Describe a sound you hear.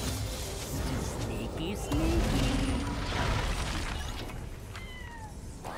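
Game attack hits thud and clash.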